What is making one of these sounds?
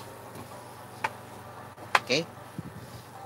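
A plastic paint palette knocks against a hard surface.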